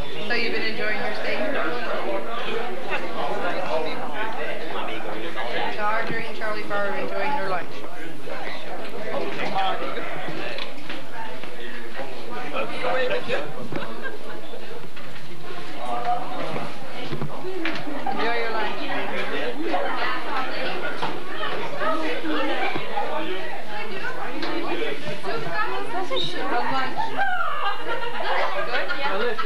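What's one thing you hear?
Many people chatter at once in a busy, echoing room.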